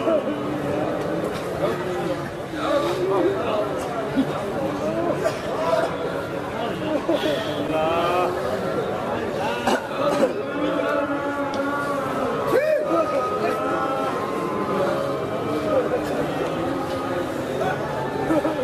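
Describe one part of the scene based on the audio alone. A man chants and preaches loudly and with fervour through a microphone and loudspeakers.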